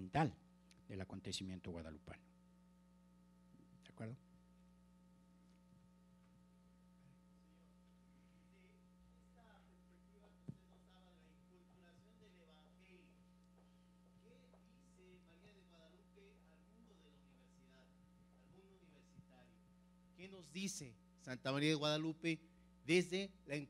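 A middle-aged man speaks with animation through a microphone, heard over a loudspeaker.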